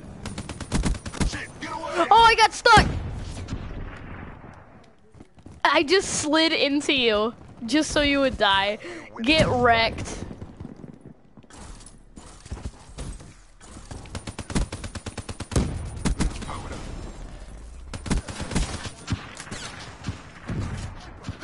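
Rapid gunfire bursts crack.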